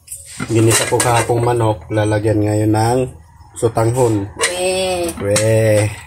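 A metal lid clanks against a cooking pot.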